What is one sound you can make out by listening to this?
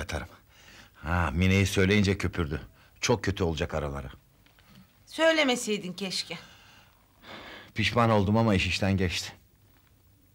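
An elderly man talks with animation, close by.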